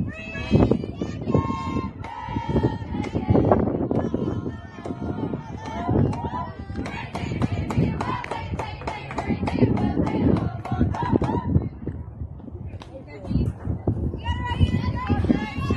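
Young women cheer and chant loudly nearby.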